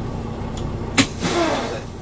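A switch clicks once.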